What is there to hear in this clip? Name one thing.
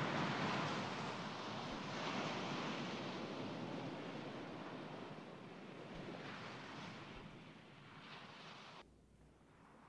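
Small waves slap and wash nearby.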